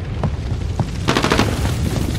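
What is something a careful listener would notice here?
A fire crackles nearby.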